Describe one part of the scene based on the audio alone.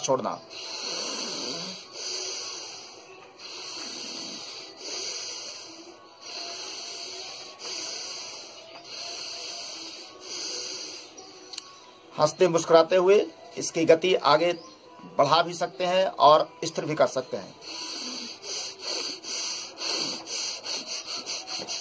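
A man breathes forcefully in and out through his nose in a steady rhythm.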